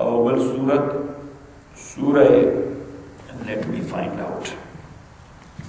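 A man speaks calmly into a microphone in an echoing room.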